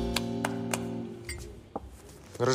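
A band plays a short burst of music.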